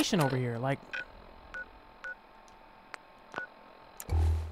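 A handheld electronic device gives short, soft beeps.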